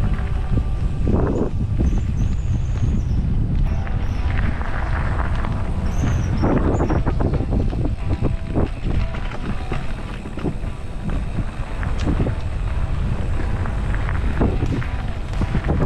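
Wind rumbles loudly against a microphone outdoors.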